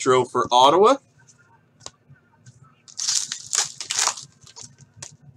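A foil wrapper rustles and tears.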